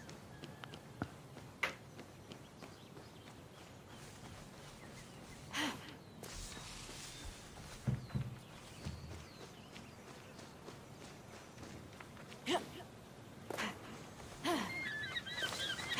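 Light footsteps patter along a stone path.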